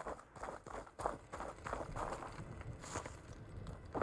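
Footsteps tread softly on a dirt floor.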